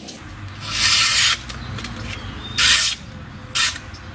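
A knife blade slices through a sheet of paper.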